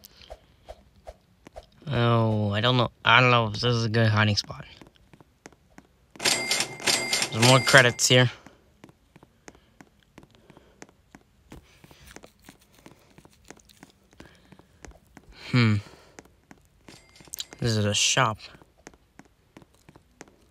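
Quick light footsteps patter on a wooden surface.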